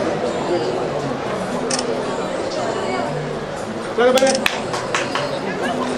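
Men and women chatter in a busy, echoing hall.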